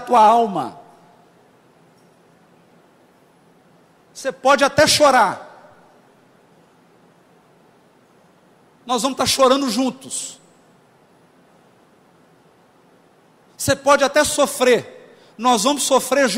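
A man speaks with animation through a microphone, in short bursts with pauses.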